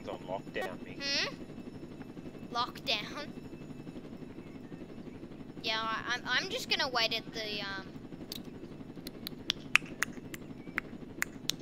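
A helicopter's rotor whirs and drones steadily.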